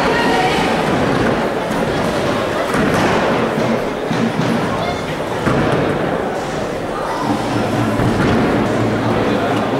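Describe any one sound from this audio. Bowling pins clatter as they fall.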